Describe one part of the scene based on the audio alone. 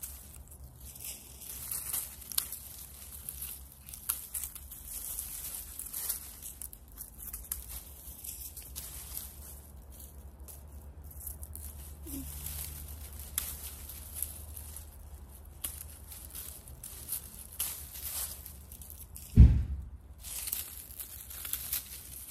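Dry stems and leaves rustle and crackle close by.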